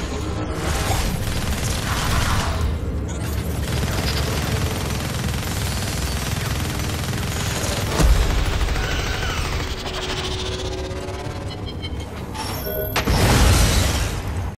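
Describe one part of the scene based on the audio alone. Energy blasts crackle and boom in a fight.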